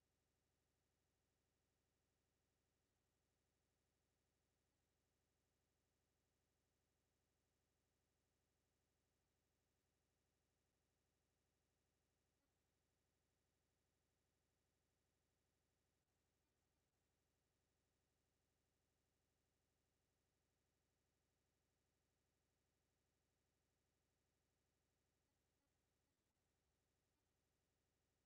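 A clock ticks steadily and quietly.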